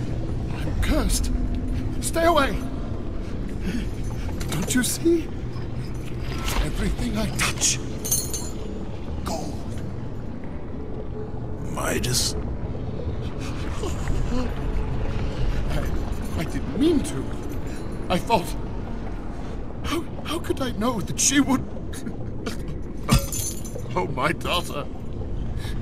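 A middle-aged man speaks in anguish, his voice breaking.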